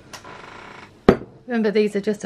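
A glass bowl is set down on a wooden table with a knock.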